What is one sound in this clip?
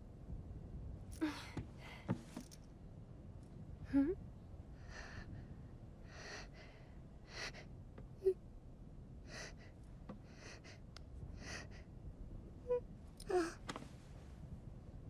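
A young woman speaks softly and warmly.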